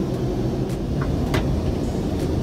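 A toilet lid clicks as it is lifted.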